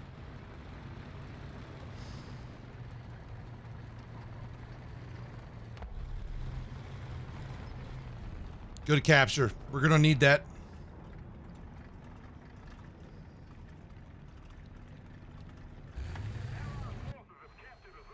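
A tank engine rumbles low and steady.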